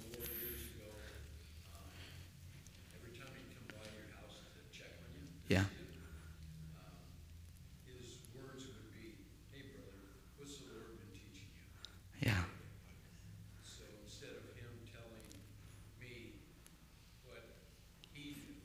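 A man speaks calmly into a microphone in a large room with a slight echo.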